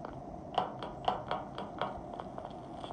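Quick light footstep taps patter from a tablet game.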